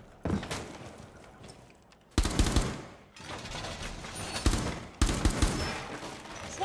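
Gunshots fire in quick bursts, echoing indoors.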